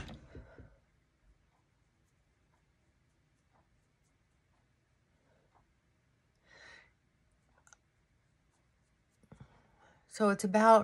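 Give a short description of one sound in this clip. A middle-aged woman speaks quietly and briefly, close by.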